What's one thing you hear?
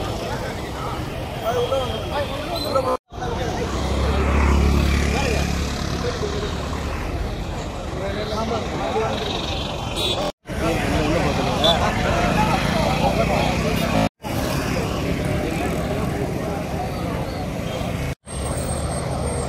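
A crowd of men chants and talks loudly outdoors.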